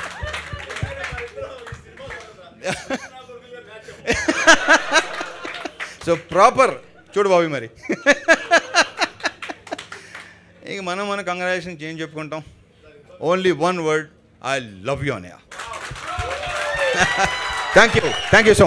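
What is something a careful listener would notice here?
A crowd laughs and cheers.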